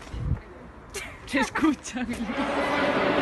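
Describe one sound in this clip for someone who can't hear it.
A teenage girl laughs close by.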